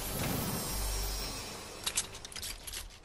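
A treasure chest bursts open with a bright chiming sparkle.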